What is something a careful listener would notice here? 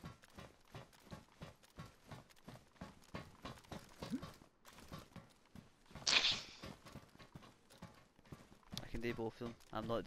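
Footsteps run quickly over a metal deck.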